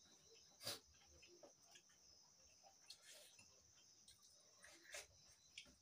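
Spoons clink and scrape against metal plates.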